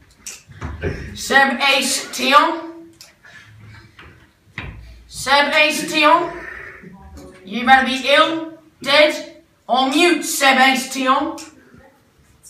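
A teenage boy reads aloud.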